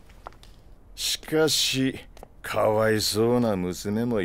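A man speaks in a low, smooth voice close by.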